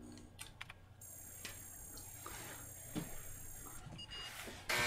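An old computer hums with a steady high whine and beeps.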